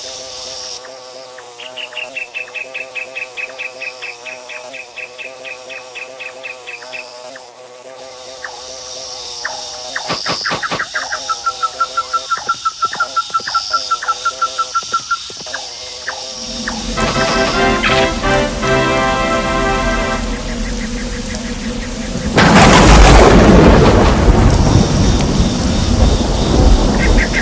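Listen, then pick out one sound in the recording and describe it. A bee buzzes steadily.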